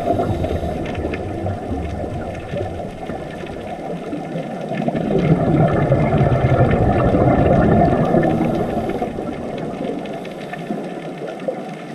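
Scuba air bubbles gurgle and rumble underwater.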